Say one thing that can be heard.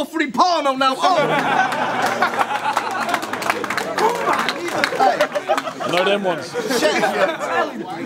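A crowd of young men cheers and shouts.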